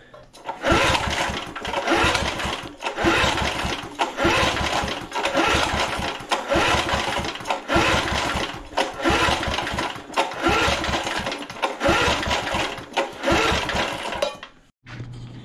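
A starter cord on a lawn mower is yanked hard again and again.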